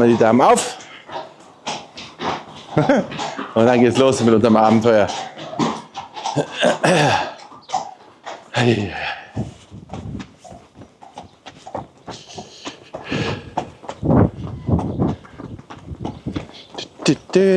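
Horse hooves clop on a hard floor.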